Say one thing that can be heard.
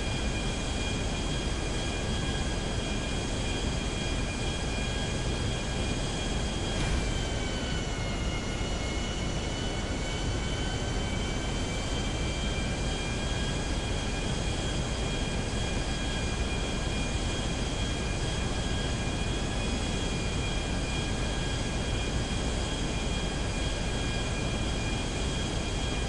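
A twin-engine business jet roars and whines in flight.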